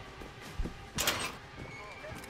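A small metal cabinet door clicks open.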